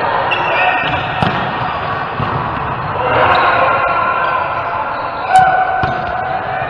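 Adult men talk casually in a large echoing hall.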